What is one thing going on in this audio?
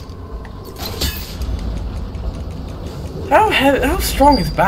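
A grappling claw fires with a sharp metallic clank.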